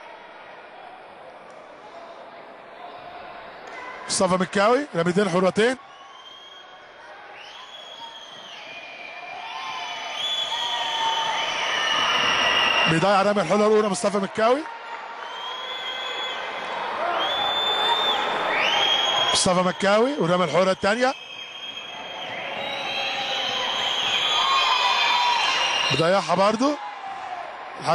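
A crowd chants and cheers in a large echoing hall, growing louder.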